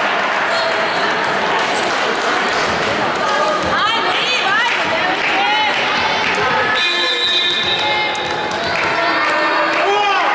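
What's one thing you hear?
A volleyball is struck with dull slaps.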